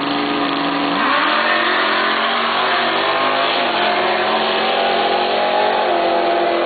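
Race car engines roar loudly as the cars speed away down the track.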